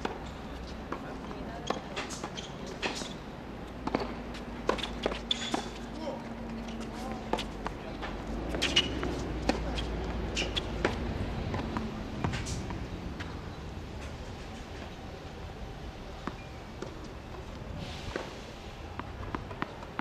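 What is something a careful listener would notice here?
Sneakers scuff and squeak on a hard court.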